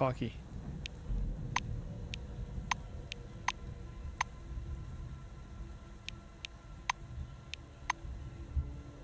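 Soft game interface clicks tick now and then.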